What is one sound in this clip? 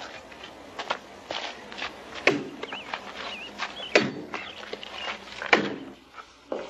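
An axe chops into a log with heavy thuds.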